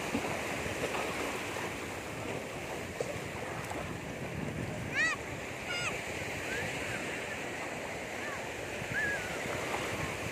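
A child's feet splash through shallow water.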